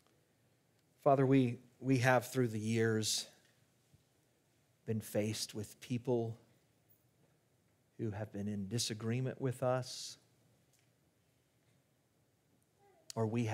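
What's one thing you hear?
A middle-aged man speaks calmly into a microphone, in pauses.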